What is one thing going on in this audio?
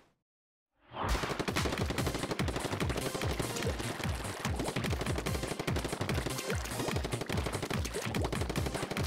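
Ink guns spray in rapid bursts.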